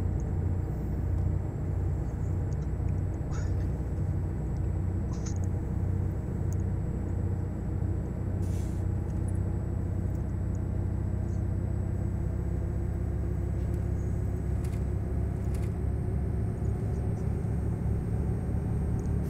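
A truck engine hums steadily at a low pitch while driving along a road.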